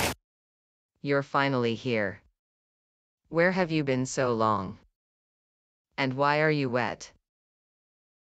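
A young woman speaks with surprise and questions, heard close through a microphone.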